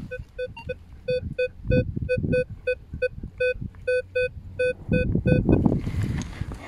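A metal detector beeps in quick, even pulses.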